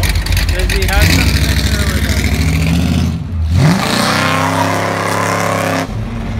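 An old pickup truck revs up and pulls away loudly.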